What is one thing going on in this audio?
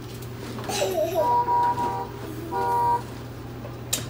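A toy car plays short electronic beeping tones.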